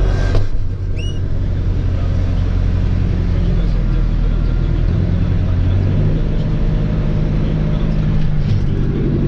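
A tractor engine drones steadily, heard from inside the cab.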